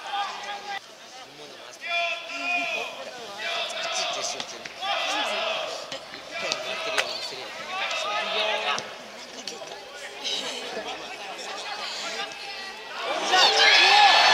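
Young men shout and call to each other across an open outdoor pitch.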